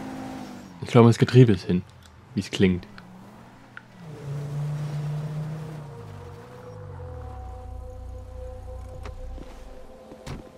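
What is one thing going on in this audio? A car engine hums and then slows down to idle.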